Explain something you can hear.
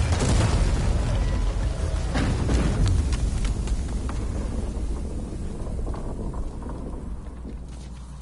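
A huge mass of ice cracks and crashes down with a deep, loud rumble.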